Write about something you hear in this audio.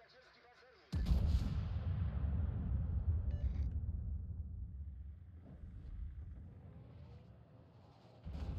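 Heavy naval guns boom and rumble.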